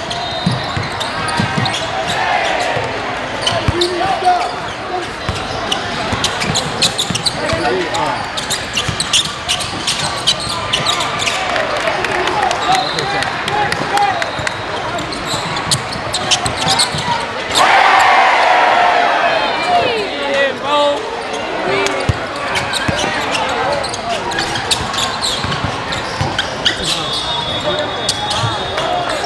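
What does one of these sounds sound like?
A large crowd chatters loudly in an echoing gym.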